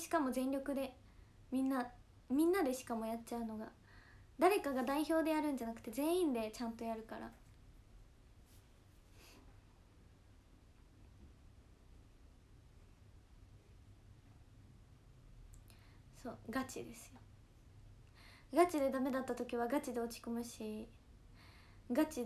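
A young woman talks animatedly close to a microphone, pausing now and then.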